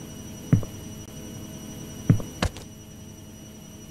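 A refrigerator door opens.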